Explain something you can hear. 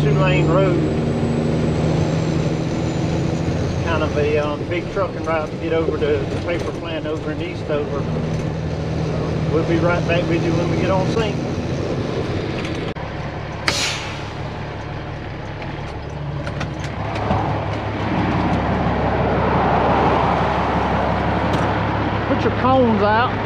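A heavy truck engine rumbles steadily while driving.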